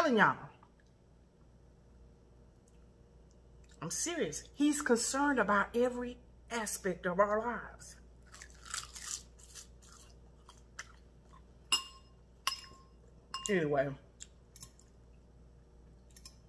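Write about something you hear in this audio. A woman chews food noisily.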